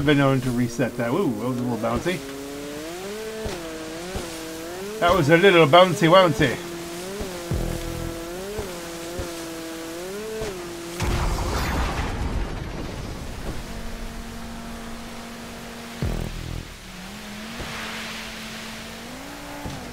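Water sprays and splashes behind a jet ski.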